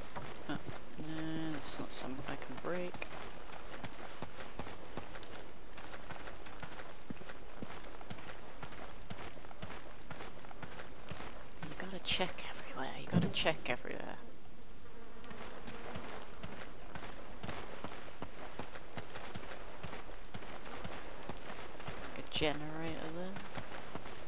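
A young woman talks now and then, close to a headset microphone.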